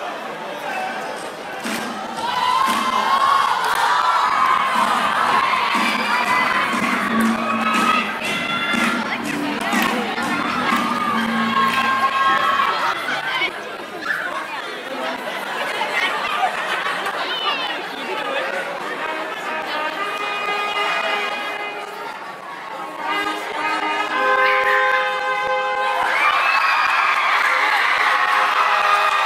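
An audience cheers and screams loudly in a large hall.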